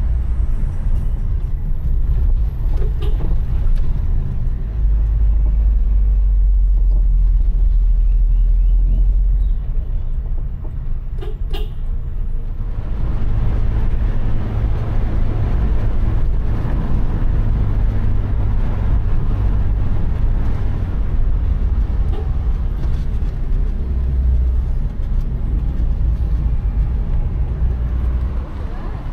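Tyres rumble over the road.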